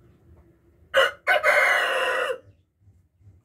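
A hen lets out a sharp, harsh squawk close by.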